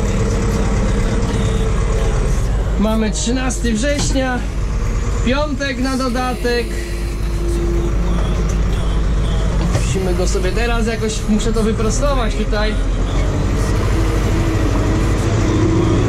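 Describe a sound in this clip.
A tractor engine rumbles steadily from inside the cab.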